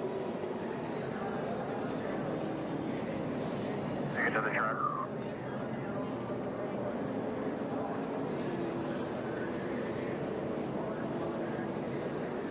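A race car engine rumbles low as the car rolls slowly.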